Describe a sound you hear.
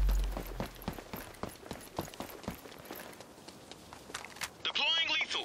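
Gunshots crack in quick, uneven bursts.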